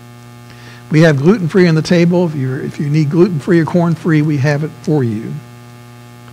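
A man speaks softly close to a microphone.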